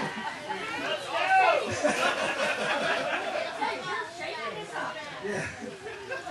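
Children chatter and call out nearby.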